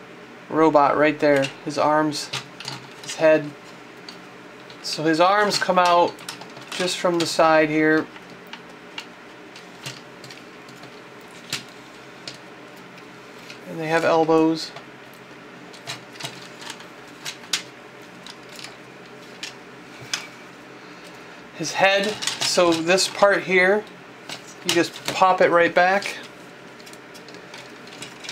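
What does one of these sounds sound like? Plastic toy parts click and snap as hands fold them.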